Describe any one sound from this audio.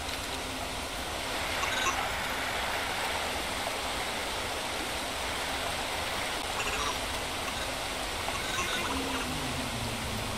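Water rushes and splashes steadily.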